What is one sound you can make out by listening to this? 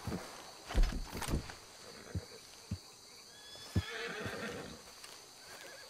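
Footsteps thud softly through grass.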